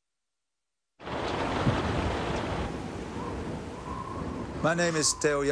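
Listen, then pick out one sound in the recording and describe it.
Wind blows strongly outdoors.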